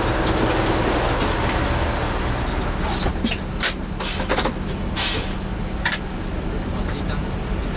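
A bus engine idles close by with a low rumble.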